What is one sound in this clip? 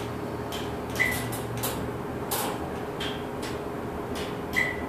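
An elevator chime beeps briefly on arrival.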